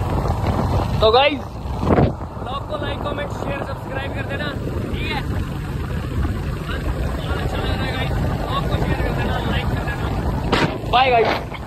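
A young man sings close to the microphone.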